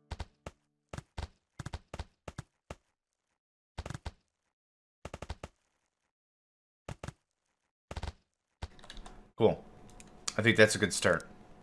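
Short interface clicks sound as buildings are placed and a menu opens.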